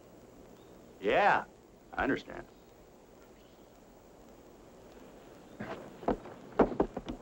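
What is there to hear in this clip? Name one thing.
An older man answers in a gruff voice.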